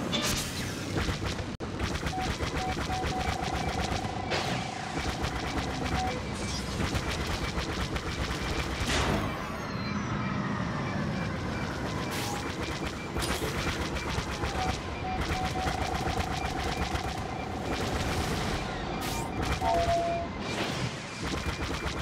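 A starfighter engine roars.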